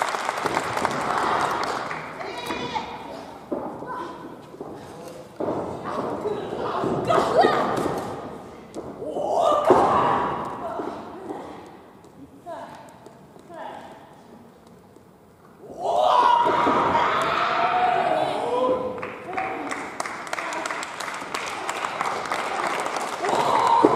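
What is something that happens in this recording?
A woman shouts loudly in an echoing hall.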